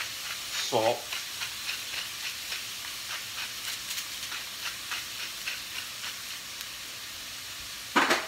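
A pepper grinder crackles in quick turns.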